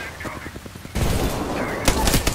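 A grenade explodes with a burst of flames.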